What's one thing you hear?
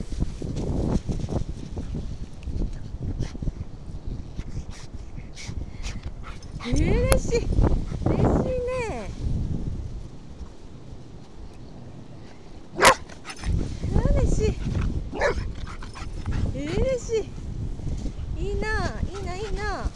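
A dog digs rapidly in loose sand with scraping paws.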